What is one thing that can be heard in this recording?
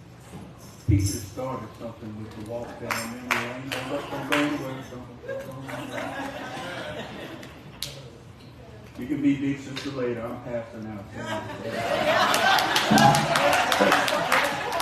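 A man preaches with animation through a microphone in an echoing room.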